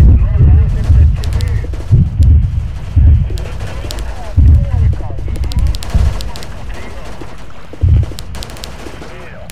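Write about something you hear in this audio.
Anti-aircraft guns fire in rapid bursts.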